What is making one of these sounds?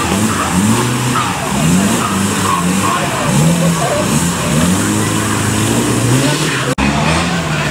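A truck engine revs hard, rising and falling.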